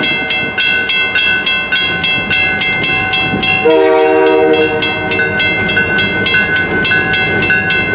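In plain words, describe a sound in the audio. A diesel locomotive engine rumbles as the train approaches.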